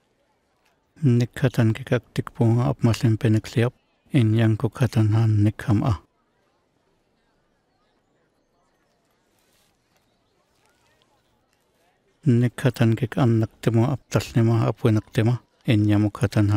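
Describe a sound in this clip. A man speaks calmly and warmly, close by.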